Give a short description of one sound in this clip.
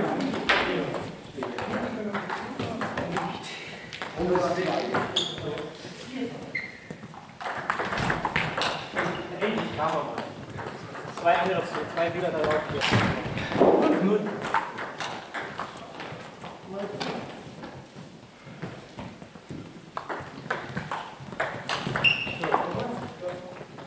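Table tennis balls click off paddles and tables in a large echoing hall.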